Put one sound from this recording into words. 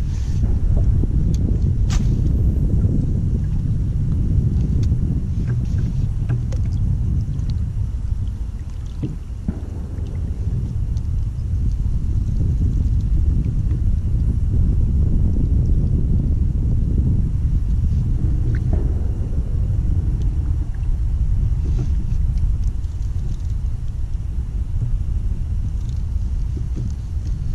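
Wind rumbles and buffets steadily outdoors.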